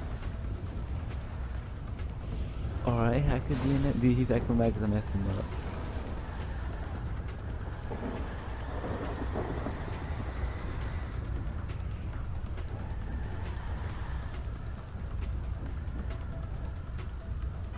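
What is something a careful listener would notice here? A sports car engine idles with a low rumble.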